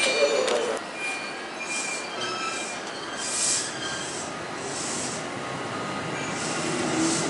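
A train pulls away with a soft, steady rolling sound.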